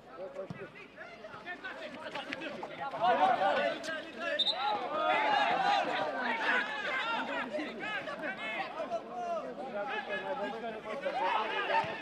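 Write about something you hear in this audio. Men shout to each other across an open pitch.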